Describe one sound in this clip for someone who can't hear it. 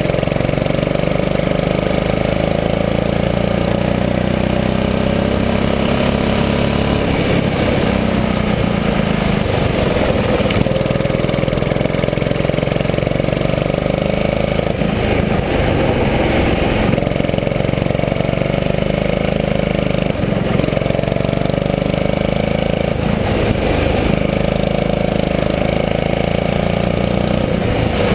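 A go-kart engine buzzes loudly close by, its pitch rising and falling as it speeds up and slows down.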